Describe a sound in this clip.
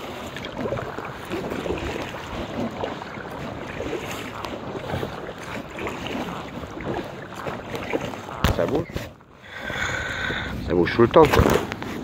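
Water splashes as a paddle dips and pulls.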